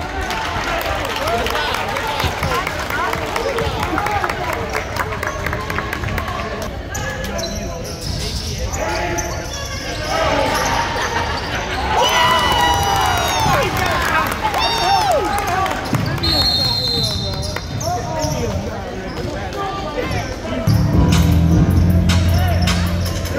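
A crowd of spectators cheers and shouts in a large echoing gym.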